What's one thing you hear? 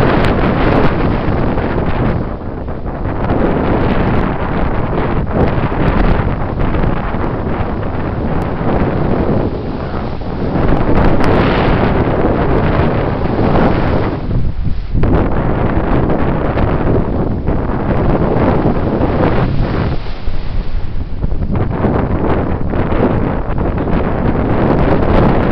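Waves crash and surf churns loudly all around.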